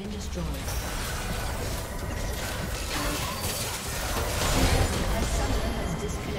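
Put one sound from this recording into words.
Magic blasts and spell effects crackle and boom in a busy fight.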